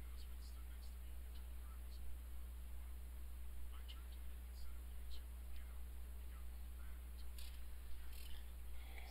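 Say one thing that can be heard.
A young man speaks quietly into a headset microphone.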